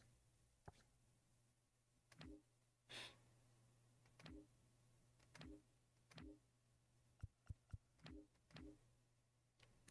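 Short electronic menu blips sound again and again.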